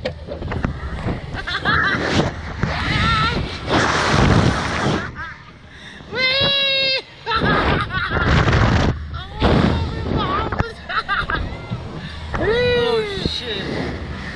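A boy laughs close by.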